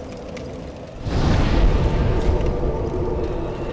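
A fire flares up with a loud rushing whoosh.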